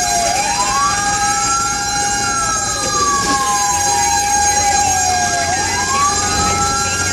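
Tyres and an engine rumble steadily on the road.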